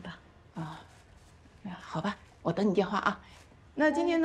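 A middle-aged woman speaks cheerfully nearby.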